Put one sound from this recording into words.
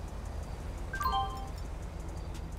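A short electronic alert chimes in falling notes.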